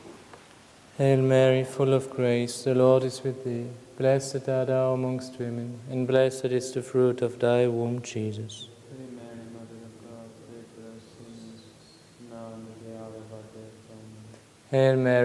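A man chants steadily in a reverberant hall.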